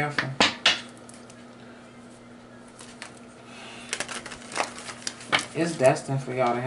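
Playing cards are shuffled and tapped together in the hands.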